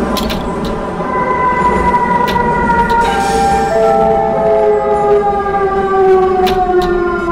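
A train's electric motor whines, falling in pitch as the train slows.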